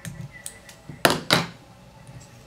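Small scissors snip a thread.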